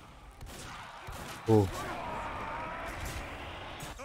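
Rockets whoosh past and explode.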